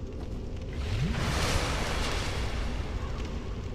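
A magic spell whooshes loudly.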